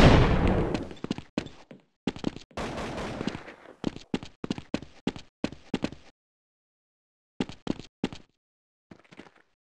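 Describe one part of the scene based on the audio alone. Footsteps clatter quickly on hard ground.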